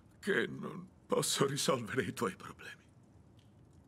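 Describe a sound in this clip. An older man speaks softly with emotion, close by.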